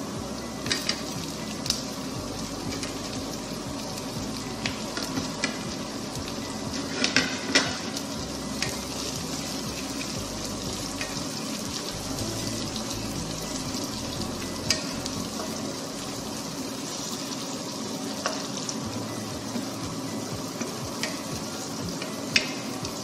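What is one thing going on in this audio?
Onions and tomatoes sizzle steadily in a frying pan.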